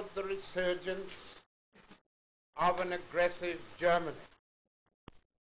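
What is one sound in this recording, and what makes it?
An elderly man speaks calmly and formally to a room.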